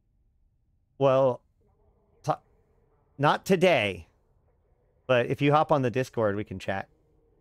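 A man speaks close to a microphone, calmly and in short bursts.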